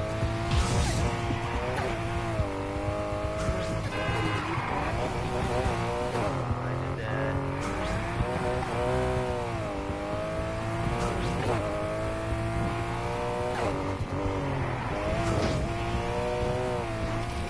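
Tyres screech as a car drifts through turns.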